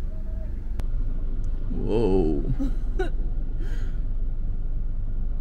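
Tyres rumble on a rough road.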